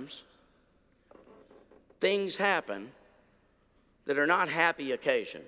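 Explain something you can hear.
An elderly man speaks with emphasis into a microphone.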